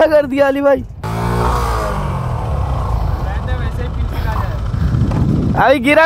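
A motorcycle engine runs and revs.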